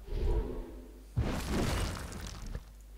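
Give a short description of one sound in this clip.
A magical burst flares with a bright shimmer.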